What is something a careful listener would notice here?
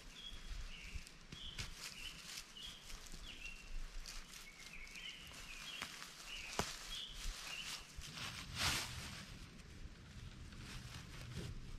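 Dry leaves crunch as a tent stake is pressed into the ground.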